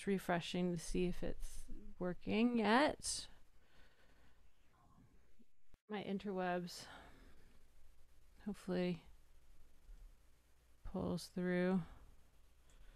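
A woman speaks calmly into a microphone over an online call.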